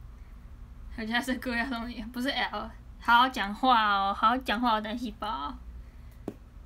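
A young woman speaks animatedly and close to a microphone.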